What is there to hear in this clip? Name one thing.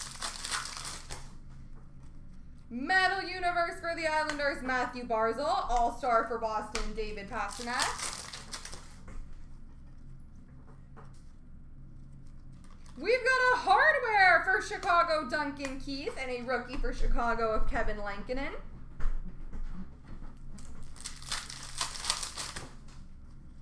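Plastic wrappers crinkle now and then as packs of cards are handled.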